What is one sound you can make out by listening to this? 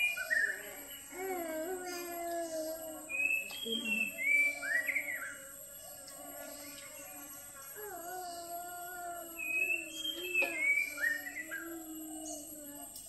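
A woman talks nearby outdoors.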